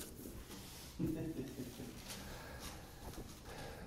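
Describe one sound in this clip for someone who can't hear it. An elderly man laughs softly.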